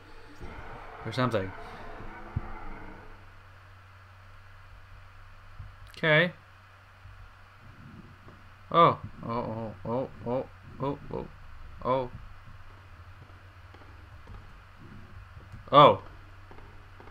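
A young man talks with animation into a microphone, close up.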